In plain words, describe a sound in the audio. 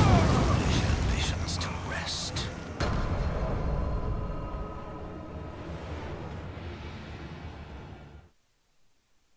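A deep, loud rumbling crash slowly fades away.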